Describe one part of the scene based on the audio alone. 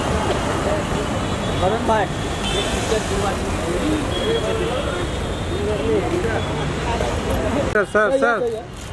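Several men shout and call out nearby.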